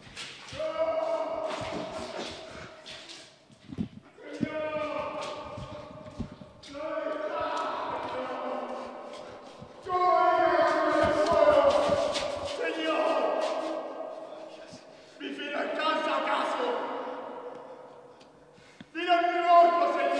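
A man shouts and cries out in anguish close by.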